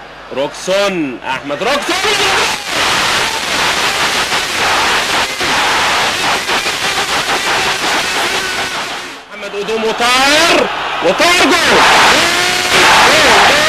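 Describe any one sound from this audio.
A large stadium crowd roars and cheers loudly.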